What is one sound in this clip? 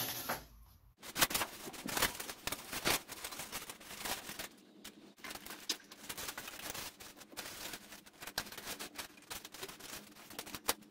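Insulation and ceiling boards rustle and crackle as they are pulled loose.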